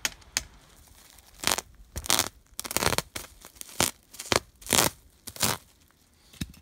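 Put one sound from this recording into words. A saw blade rasps against plastic sheeting in short strokes.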